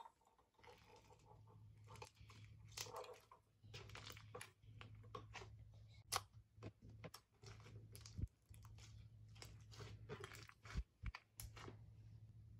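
Soft slime crackles and pops as hands squeeze and stretch it.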